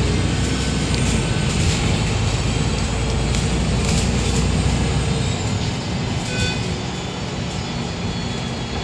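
A bus engine rumbles steadily from inside while driving.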